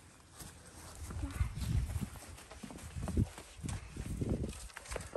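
Boots stomp on grass.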